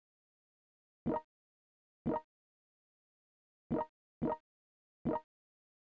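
Short interface clicks sound.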